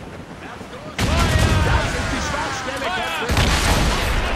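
A gun fires with a loud blast.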